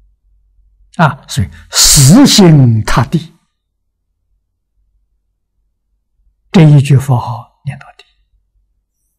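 An elderly man speaks calmly and close to a microphone.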